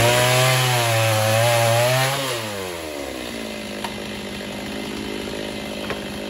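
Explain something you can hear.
A chainsaw engine runs loudly, then winds down to a steady idle.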